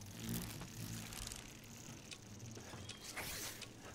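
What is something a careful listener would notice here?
A shotgun is loaded with shells, with short metallic clicks.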